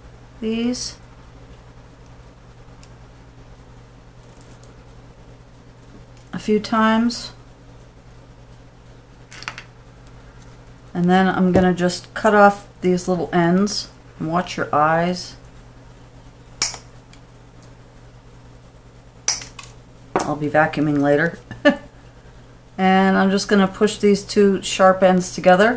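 Small metal pliers click and snip softly.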